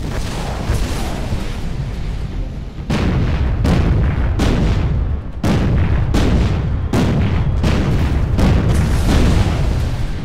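Shells explode with deep rumbling booms.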